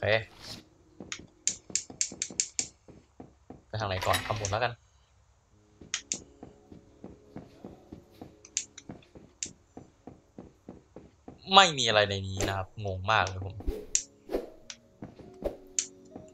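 Footsteps tap quickly and evenly as a game character walks.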